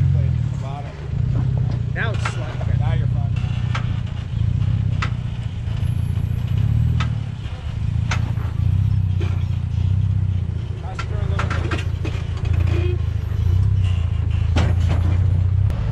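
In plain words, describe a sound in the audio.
A truck engine rumbles low and steadily.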